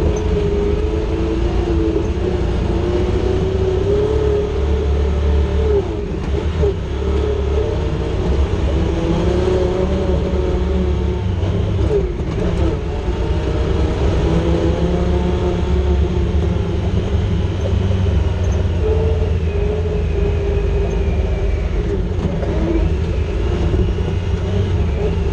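An off-road vehicle's engine drones loudly and steadily up close.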